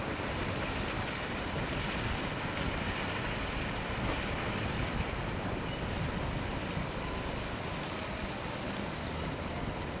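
A boat engine rumbles steadily as a boat approaches.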